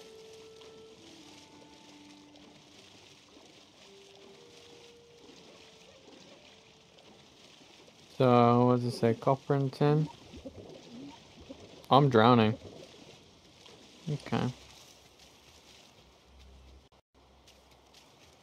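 Water splashes softly as a person wades through it.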